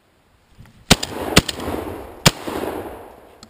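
A shotgun fires twice.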